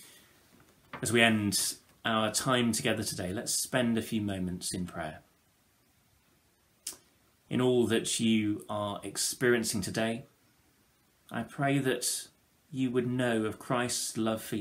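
A young man speaks calmly and close to a microphone, with pauses.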